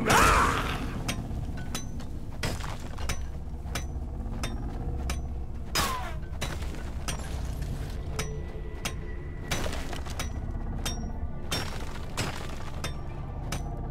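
A pickaxe strikes rock again and again with sharp cracks.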